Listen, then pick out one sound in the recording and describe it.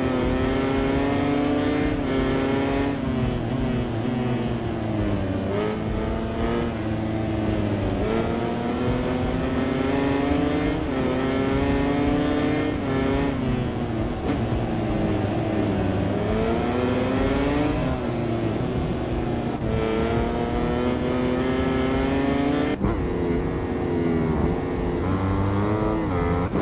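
A motorcycle engine roars loudly, its pitch rising and falling as it shifts gears.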